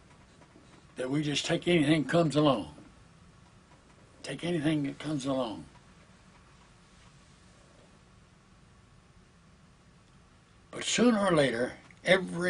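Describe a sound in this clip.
An elderly man speaks slowly and calmly, close to a microphone, with long pauses.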